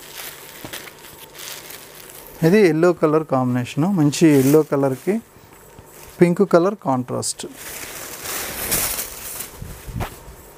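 Silk fabric rustles as it is unfolded.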